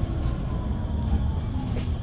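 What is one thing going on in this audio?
A tram rolls past on its rails.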